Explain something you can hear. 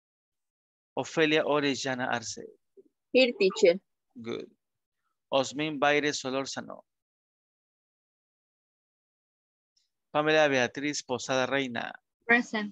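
A woman speaks through an online call, in short bursts with pauses.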